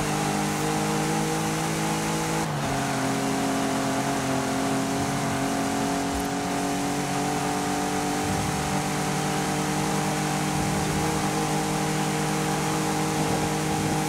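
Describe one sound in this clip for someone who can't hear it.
A car engine roars steadily at high revs, shifting gear once.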